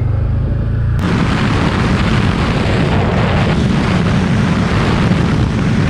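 Wind rushes loudly past the rider, growing stronger as speed picks up.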